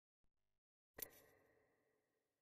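A soft menu click sounds.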